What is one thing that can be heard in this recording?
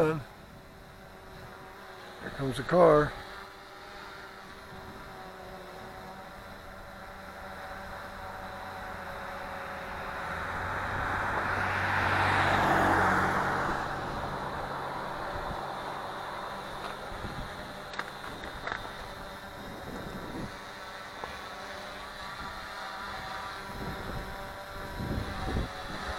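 A small drone whirs overhead.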